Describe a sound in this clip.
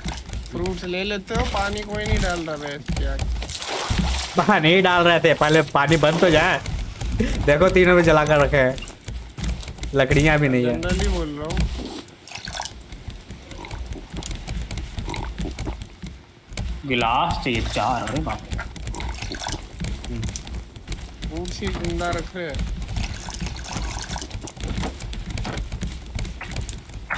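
Waves lap gently against a wooden raft.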